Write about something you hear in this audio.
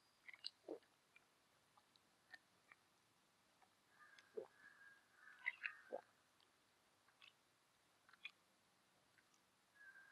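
A man drinks from a bottle in quiet gulps.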